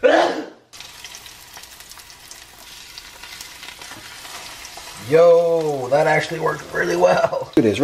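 A spatula scrapes against a metal pan.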